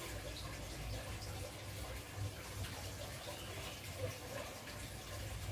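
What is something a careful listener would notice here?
Liquid trickles from a bottle into a battery cell.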